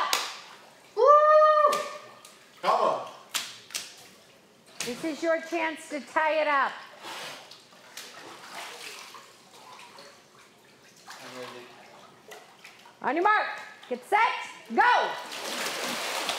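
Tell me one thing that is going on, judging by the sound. Water sloshes and splashes gently.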